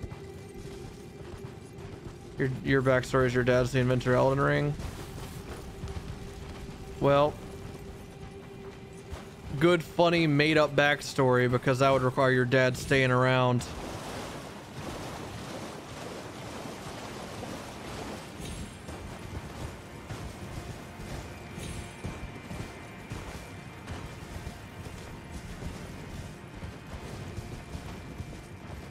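Hooves thud steadily as a horse gallops.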